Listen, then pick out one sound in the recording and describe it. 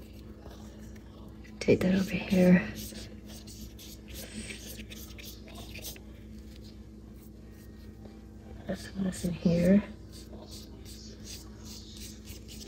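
A paintbrush dabs and swishes softly on paper.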